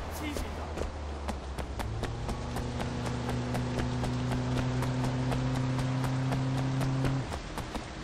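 Footsteps splash quickly on wet pavement.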